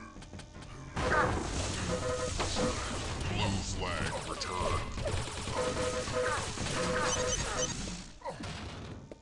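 A lightning gun crackles and buzzes in bursts.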